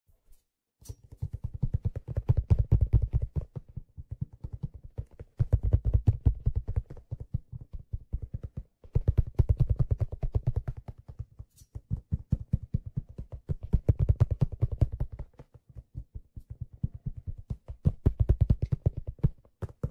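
A hand drum is struck rapidly by hand, close up, in bursts.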